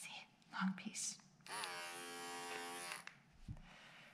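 A comb scrapes through soft fur.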